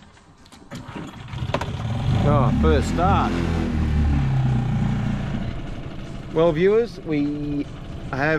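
An outboard motor starts and runs with a low, steady rumble.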